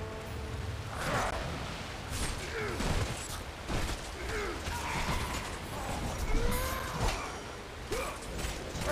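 Blades slash and strike repeatedly in a fast fight.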